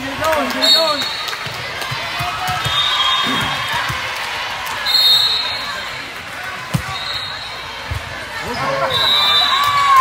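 Young women call out to each other loudly.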